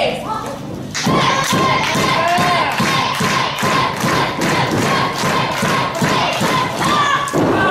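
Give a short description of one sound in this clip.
A crowd cheers and chants loudly in a large hall.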